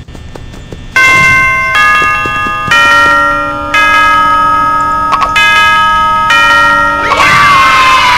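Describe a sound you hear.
A bright chime melody plays, one note after another.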